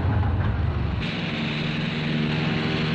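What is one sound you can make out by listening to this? An aircraft's engines hum steadily.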